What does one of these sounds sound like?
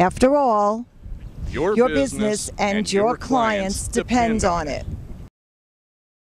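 A woman speaks clearly into a microphone with animation.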